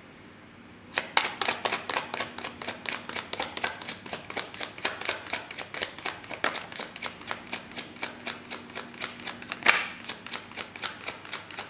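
Playing cards riffle and flick rapidly as a deck is shuffled close by.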